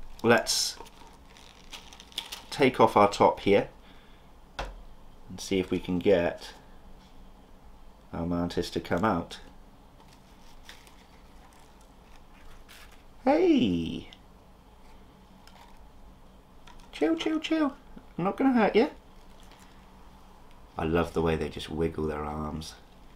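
A plastic cup rustles and crinkles in hands.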